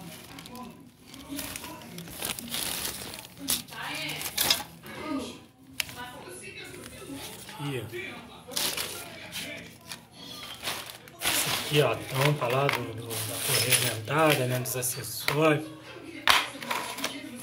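Plastic sheeting rustles and crinkles as it is handled.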